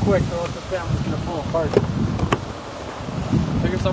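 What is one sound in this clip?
A car door opens with a click.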